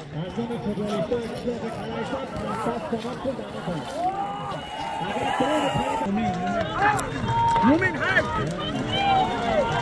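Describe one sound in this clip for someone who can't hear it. A crowd of men shout and yell outdoors.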